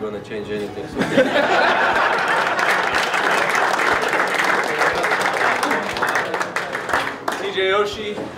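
A group of men laugh and cheer loudly.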